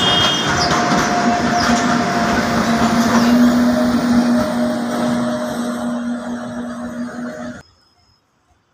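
A train horn blares steadily.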